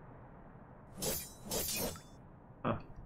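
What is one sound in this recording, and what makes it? A short game chime rings as a coin is collected.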